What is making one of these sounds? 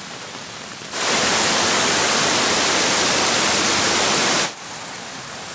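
Water rushes and splashes loudly over rocks.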